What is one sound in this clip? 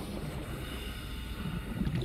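Bubbles gurgle and fizz.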